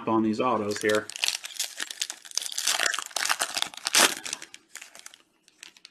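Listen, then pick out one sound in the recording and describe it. A foil wrapper crinkles and tears close by.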